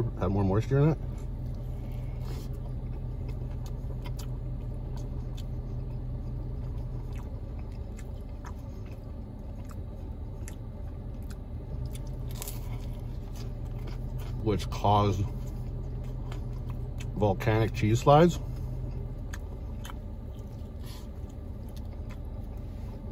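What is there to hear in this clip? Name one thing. A man chews food.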